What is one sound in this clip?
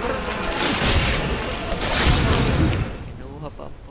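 Magic spells crackle and whoosh in a fantasy battle.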